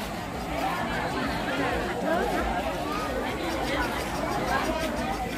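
A crowd of men and women chatter at once outdoors.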